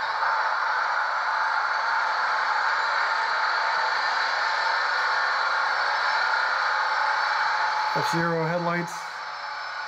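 A model train's motor hums steadily while it idles.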